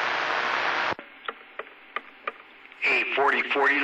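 A radio crackles and clicks as it is tuned between stations.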